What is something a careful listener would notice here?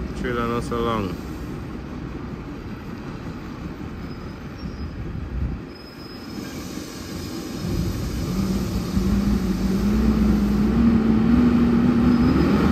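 A heavy truck engine rumbles as the truck approaches, growing louder.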